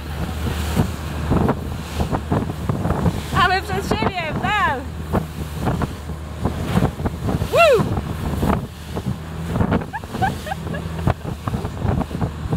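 A boat engine hums steadily and low.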